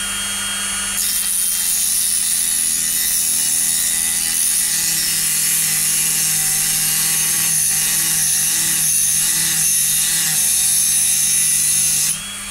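A small rotary tool grinds against metal.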